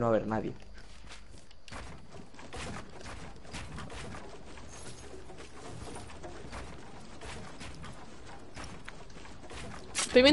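Wooden panels snap into place with quick knocks and clatters.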